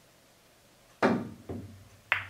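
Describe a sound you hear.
A cue sharply strikes a pool ball.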